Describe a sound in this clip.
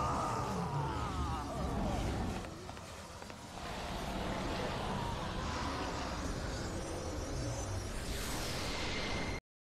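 A magical energy blast roars and crackles.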